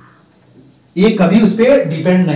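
A man speaks loudly and clearly close to a microphone, in a lecturing tone.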